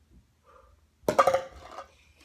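A plastic toy golf club taps a ball.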